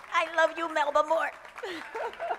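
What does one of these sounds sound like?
A woman speaks with animation through a microphone outdoors.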